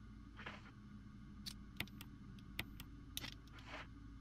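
Menu selection clicks sound in quick succession.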